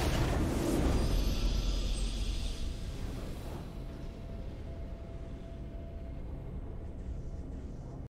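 A triumphant game victory fanfare plays.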